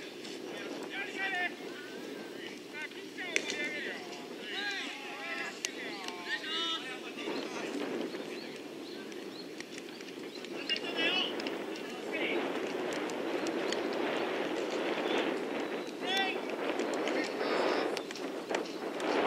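Young men call out across an open field in the distance.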